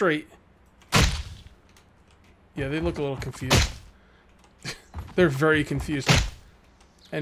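A metal pipe strikes a body with heavy thuds.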